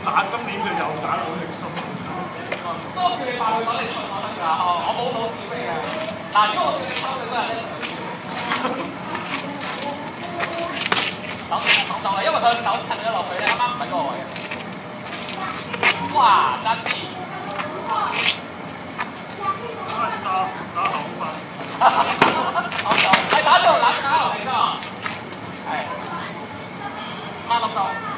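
Men talk and call out.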